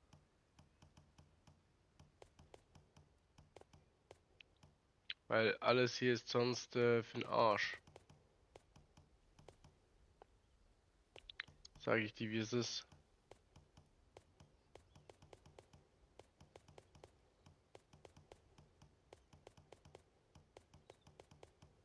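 Soft menu clicks tick again and again.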